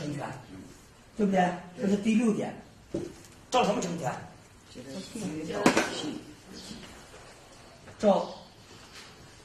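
A man speaks calmly and clearly, lecturing nearby.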